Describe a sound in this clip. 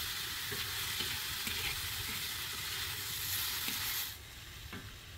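Vegetables sizzle and crackle in a hot pan.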